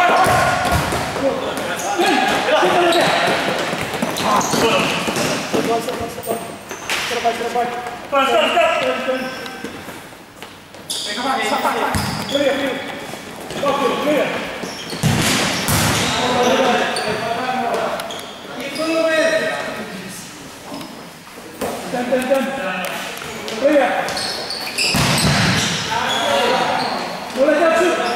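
Young men shout to each other in a large echoing hall.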